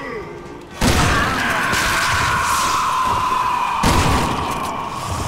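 A gun fires loud shots that echo.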